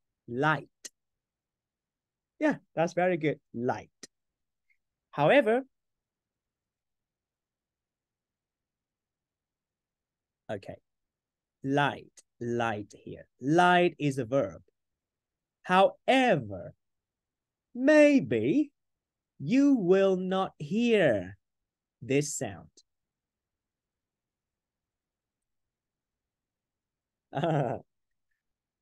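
A young man speaks calmly through a microphone, in short bursts with pauses.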